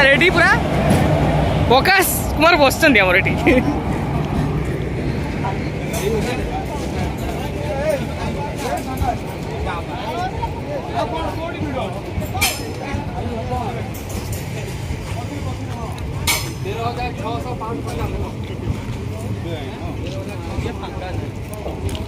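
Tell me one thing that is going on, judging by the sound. A train rumbles steadily along a platform.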